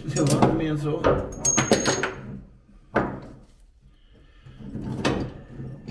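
A metal part knocks as it is pulled free.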